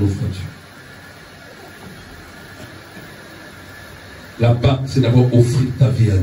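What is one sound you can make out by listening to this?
A man speaks loudly and with emphasis into a microphone, heard through loudspeakers in an echoing room.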